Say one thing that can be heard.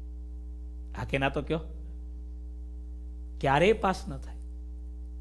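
A man speaks calmly into a close microphone, in two short phrases.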